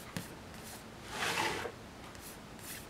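A planner page flips over with a soft swish.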